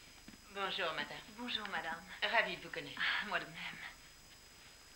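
A woman speaks in a friendly, welcoming tone nearby.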